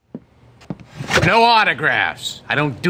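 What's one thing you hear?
A man speaks gruffly and close by.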